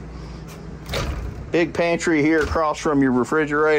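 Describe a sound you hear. A cabinet door swings open with a soft click.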